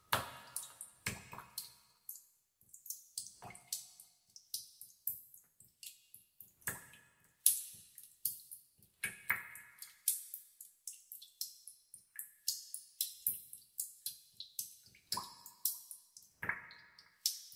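Water drops plink into still water, one after another.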